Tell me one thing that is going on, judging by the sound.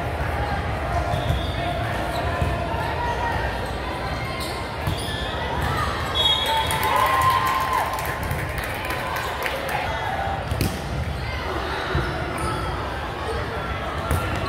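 Young women call out and chatter across the gym.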